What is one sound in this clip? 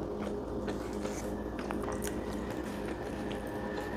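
Leaves rustle and crinkle as food is unwrapped.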